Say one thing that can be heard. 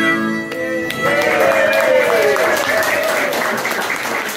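A harmonica plays a wailing melody through a microphone.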